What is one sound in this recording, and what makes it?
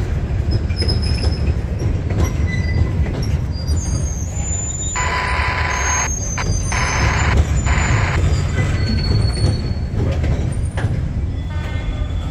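Steel wheels squeal against the rails.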